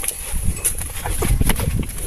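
A cow eats from a trough.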